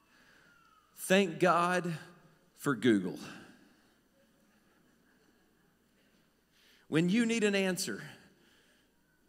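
A man speaks into a microphone, heard through loudspeakers in an echoing hall.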